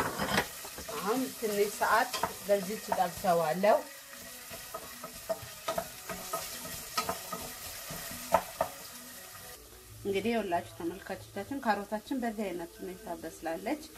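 A wooden spoon scrapes and knocks against a metal pot.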